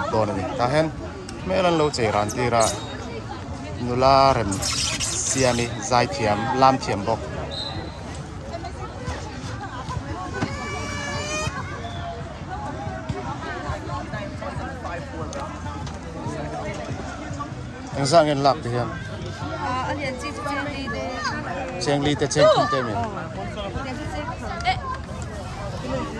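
Children and young people chatter nearby outdoors.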